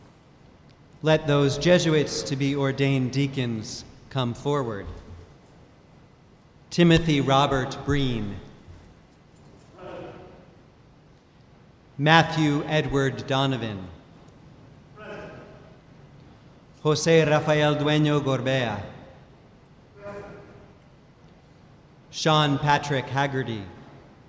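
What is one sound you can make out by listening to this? A young man chants in short sung phrases through a microphone in a large echoing hall.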